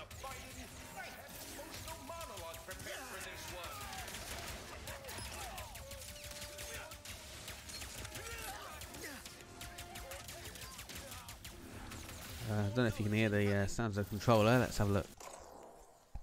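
Blaster shots fire and explosions boom in quick bursts.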